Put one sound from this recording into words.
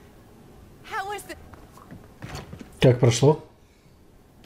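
A middle-aged woman speaks warmly, close by.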